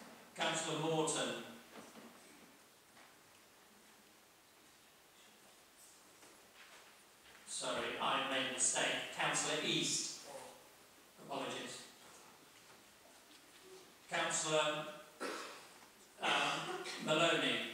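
A man speaks calmly into a microphone in a large, slightly echoing room, with pauses between phrases.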